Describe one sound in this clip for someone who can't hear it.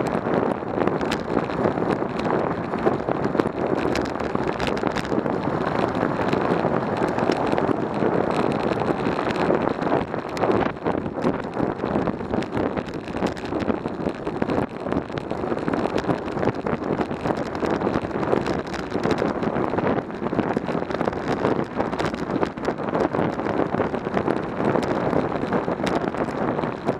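Wind rushes and buffets loudly throughout.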